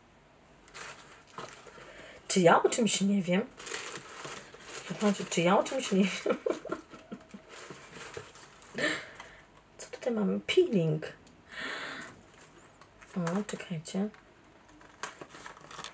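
Paper and a cardboard box rustle in a young woman's hands.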